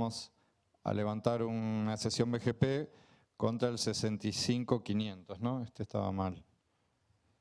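A middle-aged man speaks calmly into a microphone, heard through a loudspeaker.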